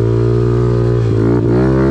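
A motorbike engine revs briefly.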